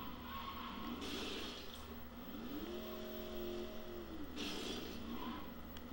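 Car tyres screech while sliding.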